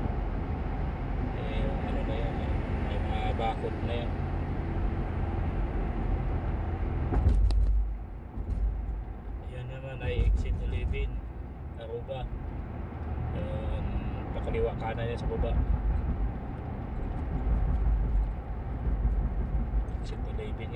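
A car engine hums steadily while driving on a highway.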